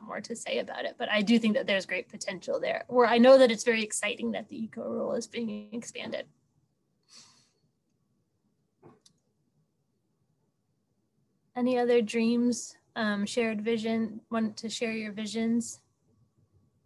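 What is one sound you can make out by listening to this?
A woman speaks calmly into a microphone over an online call.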